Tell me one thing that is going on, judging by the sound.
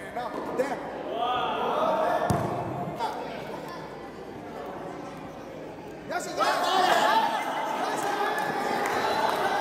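A crowd of young children chatter and shout excitedly in a large echoing hall.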